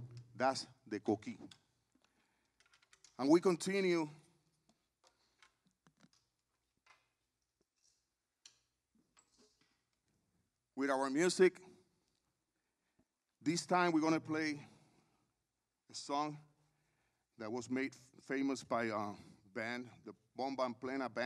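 An older man speaks with animation into a microphone, in short bursts with pauses.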